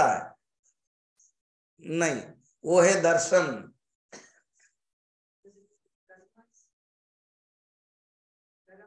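An elderly man speaks slowly and calmly into a close microphone, with long pauses.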